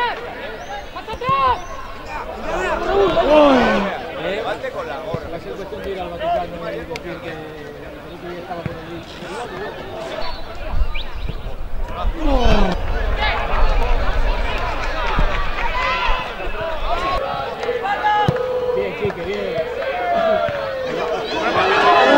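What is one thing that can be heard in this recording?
Men shout across an open outdoor pitch.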